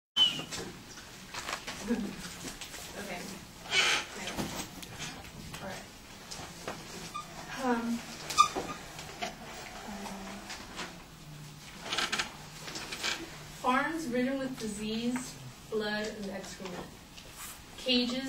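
A young woman speaks calmly to a room, heard from a short distance with a slight echo.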